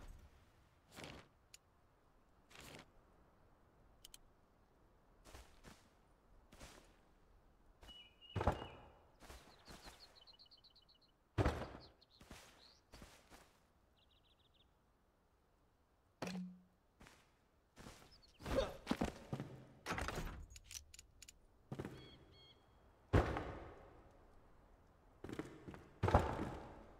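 Wooden building pieces knock and thud into place.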